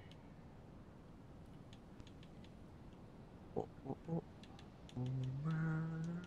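Soft interface clicks tick as menu items are selected.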